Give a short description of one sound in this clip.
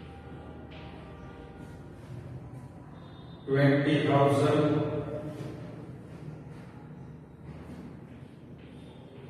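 A man speaks calmly, close by.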